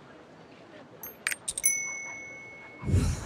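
Soft interface clicks and a ringing tone sound.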